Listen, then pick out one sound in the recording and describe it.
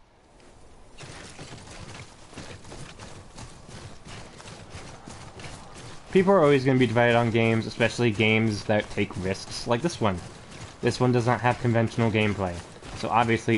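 Footsteps tramp through grass at a steady pace.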